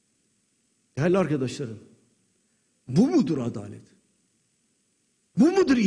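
An elderly man speaks forcefully into a microphone in a large hall, pausing between phrases.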